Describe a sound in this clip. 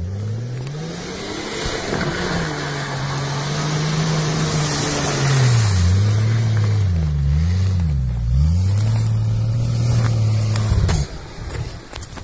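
Tyres churn and splash through mud and water.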